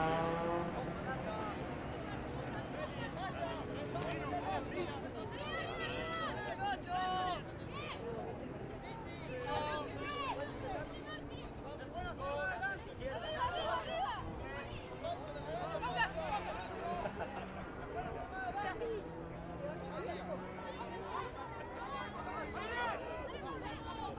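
Teenage boys shout short calls to each other outdoors.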